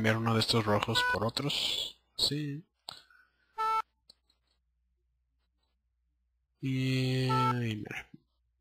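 Short electronic musical notes sound in bursts.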